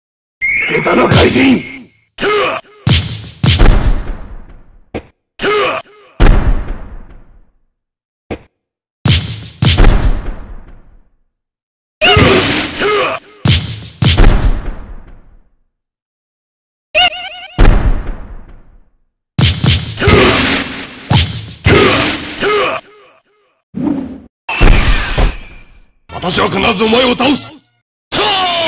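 Punches and kicks land with loud, sharp thuds, over and over.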